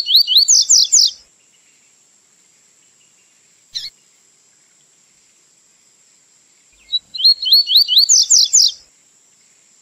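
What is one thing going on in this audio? A songbird sings a quick series of bright, rising whistles in short bursts.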